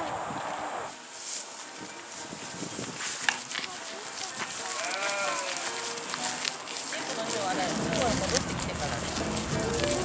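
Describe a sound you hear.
An alpaca chews hay with soft crunching.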